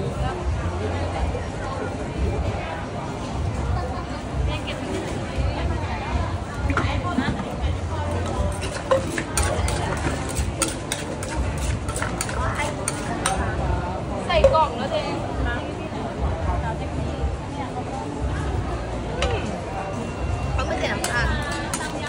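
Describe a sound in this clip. A pestle pounds and clatters in a mortar.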